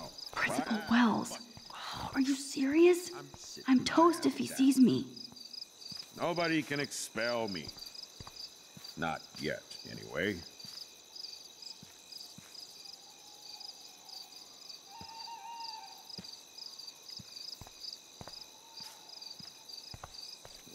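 Crickets chirp steadily in the background.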